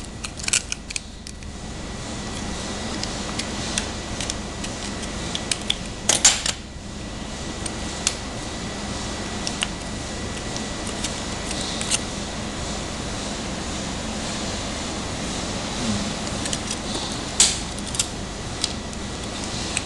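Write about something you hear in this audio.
A plastic wrapper crinkles and rustles in hands.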